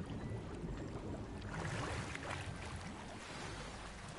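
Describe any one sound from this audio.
Water splashes loudly as a swimmer surfaces.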